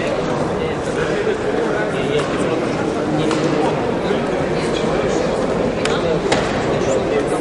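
Feet shuffle and thud on a canvas floor.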